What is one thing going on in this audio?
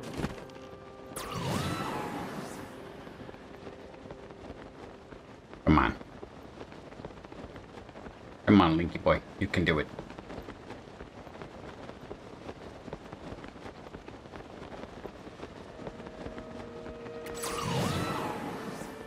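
Wind rushes steadily around a gliding figure.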